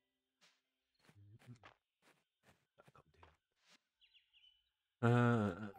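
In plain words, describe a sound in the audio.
Soft footsteps patter quickly.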